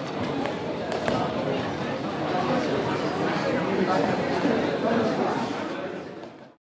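A crowd of spectators chatters and shouts in an echoing hall.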